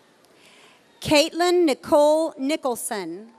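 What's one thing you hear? A man reads out over a loudspeaker in a large echoing hall.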